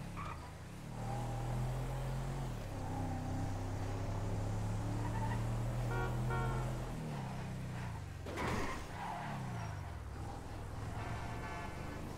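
A car engine hums steadily and then slows down, its pitch gliding lower.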